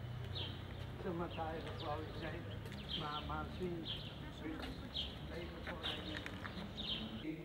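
An elderly woman talks nearby.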